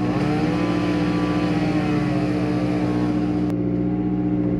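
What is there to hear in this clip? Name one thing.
A chainsaw whines loudly, cutting wood outside.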